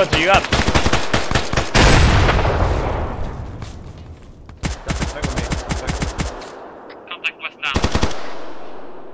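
A rifle fires rapid bursts of gunshots that echo through a forest.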